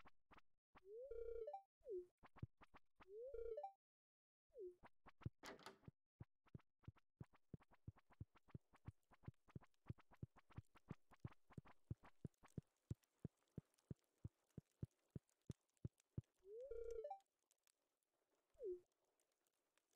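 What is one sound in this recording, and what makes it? A short chirping chime sounds.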